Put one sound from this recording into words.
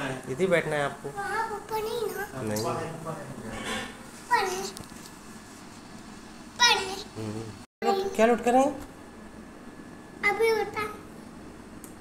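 A young boy speaks up close in short, lively bursts.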